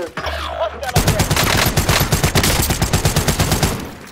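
An automatic rifle fires rapid bursts close by.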